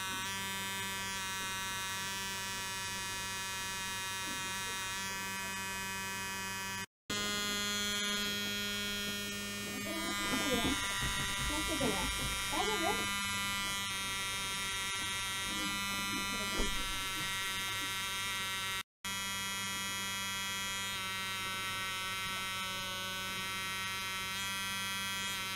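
An electric toothbrush buzzes steadily close by.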